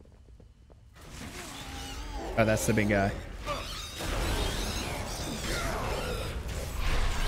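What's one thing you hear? Game combat sounds clash and thud.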